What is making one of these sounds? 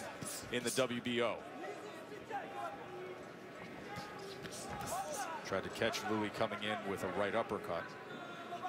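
A large crowd murmurs in a big arena.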